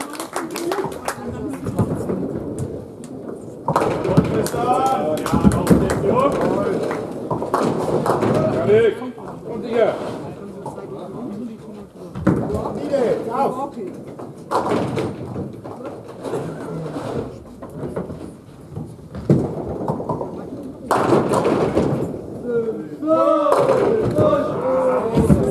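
Heavy balls roll down the lanes with a low rumble in an echoing hall.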